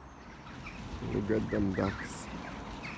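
Geese honk nearby.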